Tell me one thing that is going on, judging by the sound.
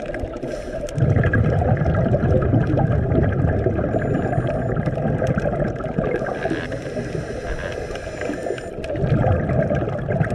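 Air bubbles from a diver's breathing gurgle and rumble underwater in bursts.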